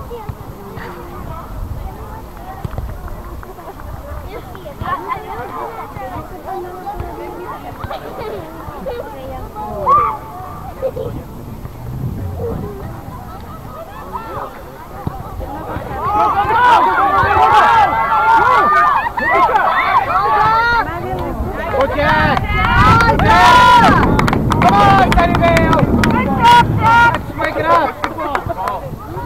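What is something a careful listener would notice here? A crowd of adult spectators shouts and cheers outdoors.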